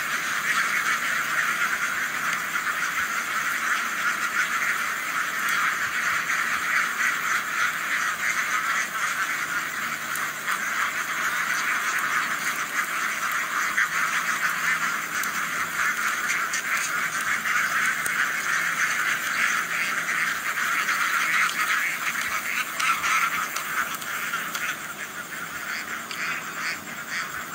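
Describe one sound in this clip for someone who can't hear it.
A large flock of ducks quacks loudly and continuously nearby.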